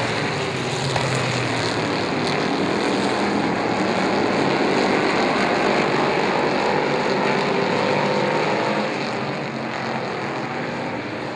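Several race car engines roar loudly as the cars speed around an oval track.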